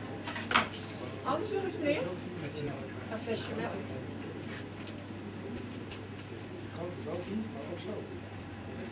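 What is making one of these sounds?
A middle-aged woman speaks.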